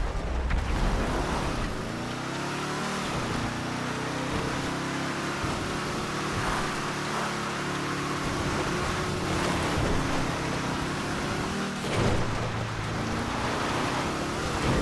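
A sports car engine roars at speed, shifting through the gears.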